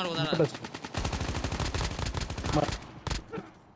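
Rapid rifle gunfire rattles in quick bursts.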